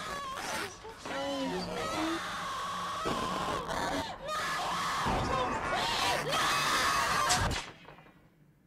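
Loud music plays, then stops abruptly.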